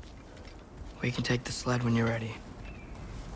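A man speaks briefly in a deep voice.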